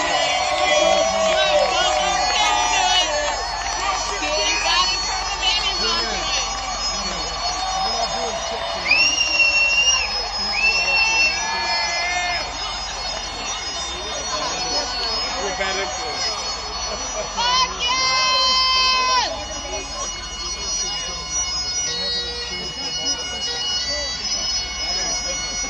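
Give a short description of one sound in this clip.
A man sings into a microphone over loudspeakers.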